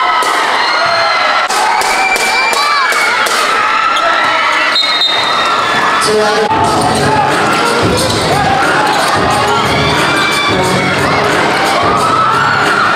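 A large crowd chatters and cheers in an echoing gym.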